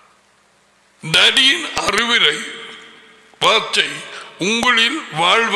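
An older man speaks loudly and with animation close to a microphone.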